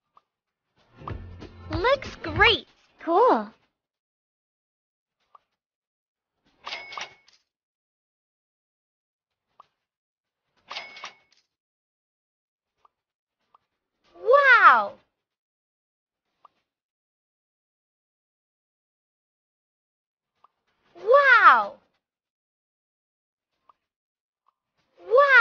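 Short cheerful game chimes ring out now and then.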